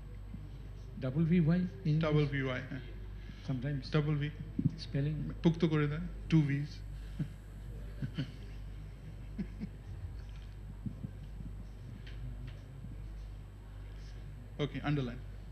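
A middle-aged man speaks calmly into a microphone in a large room.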